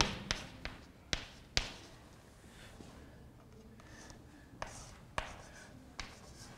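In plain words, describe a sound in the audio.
Chalk taps and scrapes on a blackboard.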